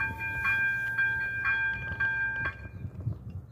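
A level crossing bell rings rapidly nearby, then stops.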